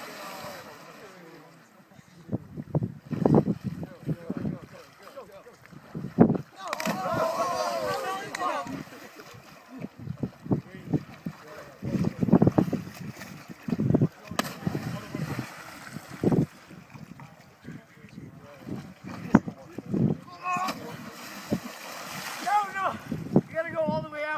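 Swimmers splash and paddle in water.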